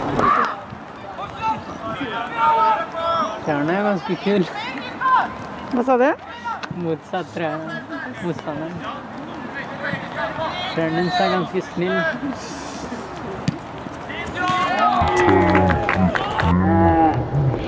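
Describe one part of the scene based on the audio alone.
Young men shout to each other across an open sports field outdoors.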